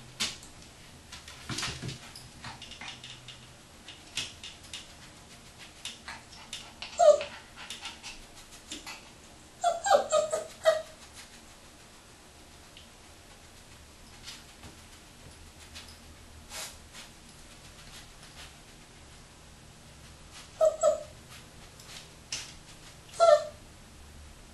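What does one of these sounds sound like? A puppy scratches and rustles on a cloth.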